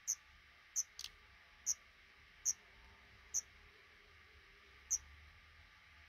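Nestling birds give short, shrill peeps close by.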